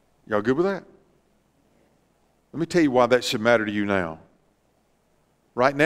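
A middle-aged man speaks with emphasis through a microphone in a large room, pausing between phrases.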